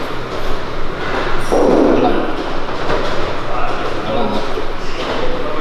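A weight machine's handles creak and clank as they are pressed overhead.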